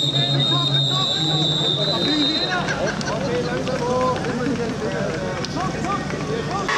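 Young men shout to each other nearby.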